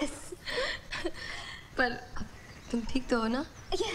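A woman speaks emotionally up close.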